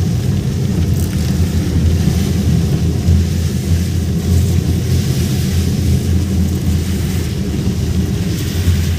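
Rain patters on the car's windscreen.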